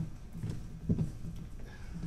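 Footsteps thud on a wooden floor in a large echoing hall.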